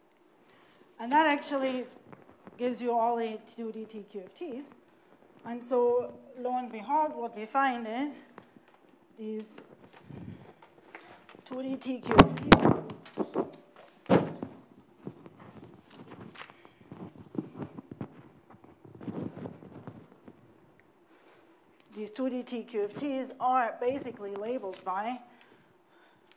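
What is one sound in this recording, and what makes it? A woman lectures calmly, heard through a microphone in a large room.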